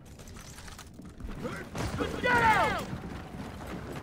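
Heavy boots thud on hard ground as an armoured soldier runs.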